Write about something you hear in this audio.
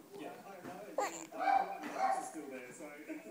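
A baby babbles briefly up close.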